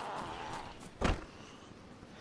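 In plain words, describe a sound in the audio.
A wooden door creaks and knocks shut.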